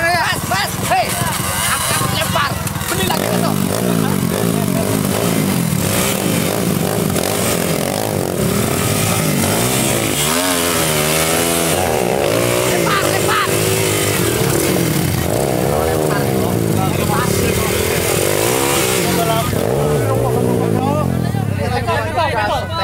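A dirt bike engine revs hard, rising and falling sharply.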